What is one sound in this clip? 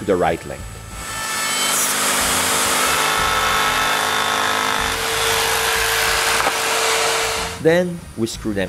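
A jigsaw buzzes steadily as it cuts wood.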